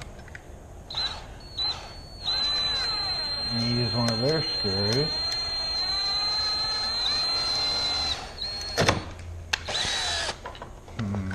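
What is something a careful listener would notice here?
A cordless drill whirs, driving a screw in a long steady run and short bursts.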